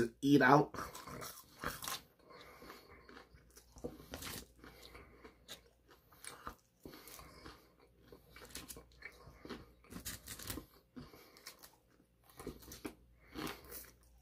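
A young man chews food with crunching, wet sounds.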